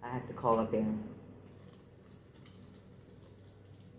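A woman bites into crispy fried chicken and chews.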